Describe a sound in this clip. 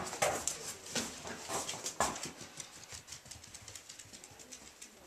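A puppy's claws scratch and tap on a hard surface.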